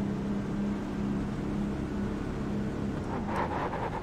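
A race car engine idles with a low, steady rumble.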